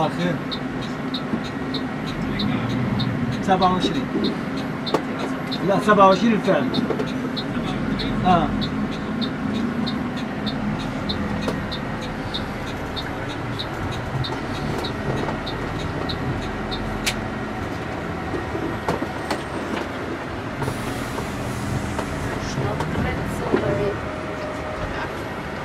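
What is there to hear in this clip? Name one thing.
A vehicle engine rumbles steadily from inside as it drives.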